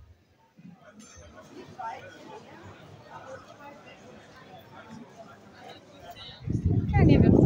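A crowd of people chatters outdoors in a busy street.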